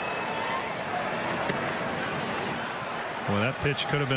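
A baseball smacks into a catcher's mitt.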